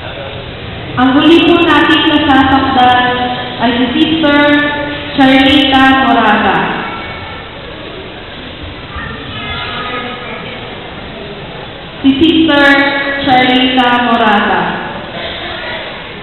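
A woman sings into a microphone over loudspeakers in an echoing hall.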